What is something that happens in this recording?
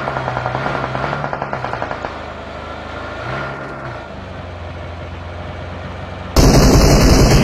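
A car engine hums steadily as a vehicle drives.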